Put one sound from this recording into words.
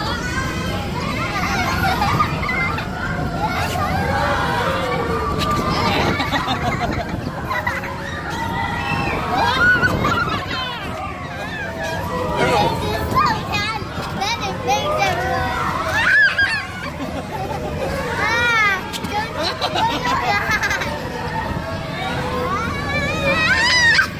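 A fairground ride rumbles steadily.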